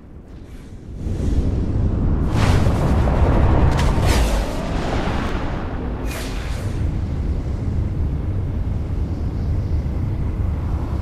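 Wind rushes loudly past a figure flying through the air.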